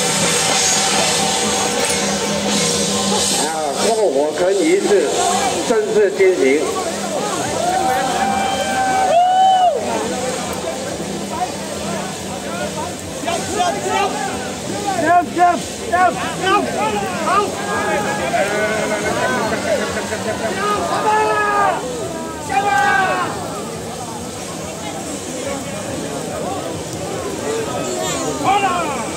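A large crowd of men and women talks and shouts loudly nearby.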